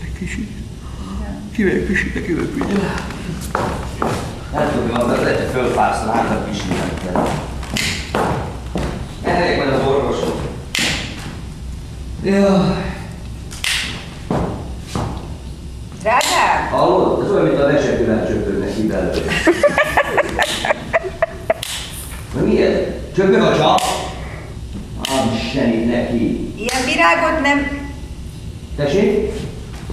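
A young woman speaks with feeling on a stage, heard from a distance in a hall.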